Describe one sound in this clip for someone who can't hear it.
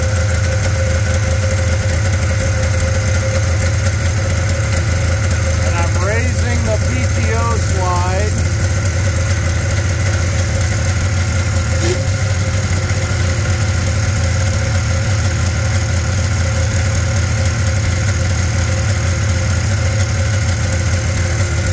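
An electric heater hums steadily.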